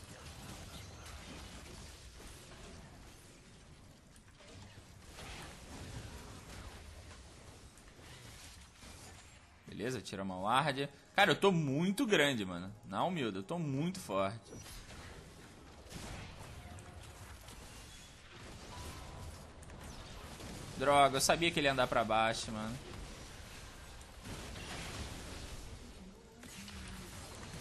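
Game sound effects of fighting and spells play quietly throughout.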